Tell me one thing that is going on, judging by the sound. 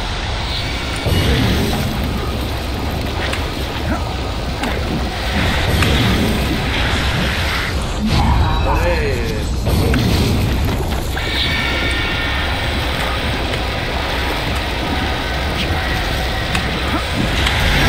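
Water rushes and splashes steadily.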